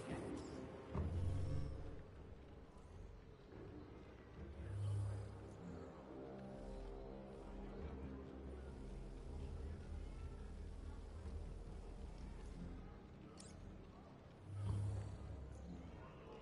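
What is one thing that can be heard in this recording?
Deep whooshing swells sound as a game menu's globe turns.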